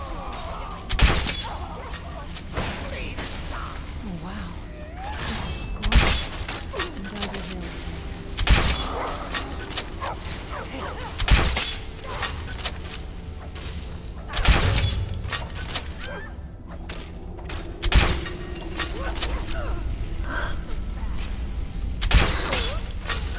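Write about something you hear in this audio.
A crossbow fires with a sharp thwack, again and again.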